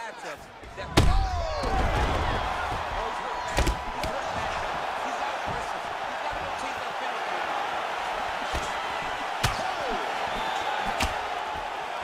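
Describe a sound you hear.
Punches and kicks thud against a body.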